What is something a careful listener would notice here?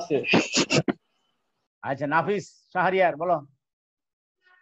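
A middle-aged man speaks through an online call microphone.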